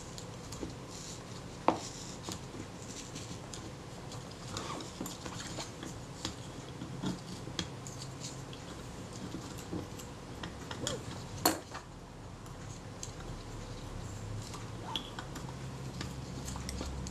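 Small metal parts click and tap as they are handled up close.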